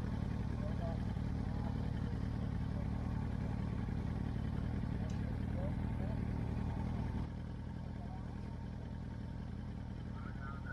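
An off-road vehicle's engine idles with a low, steady rumble outdoors.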